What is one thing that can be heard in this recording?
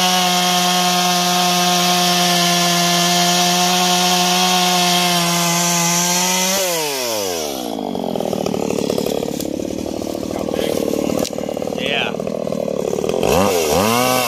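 A chainsaw engine roars at high speed, then drops to a rattling idle.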